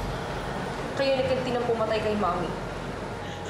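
A woman speaks sharply and with agitation nearby.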